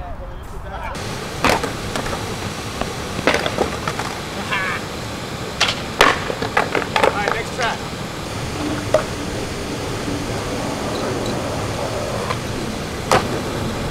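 Water rushes loudly down a spillway.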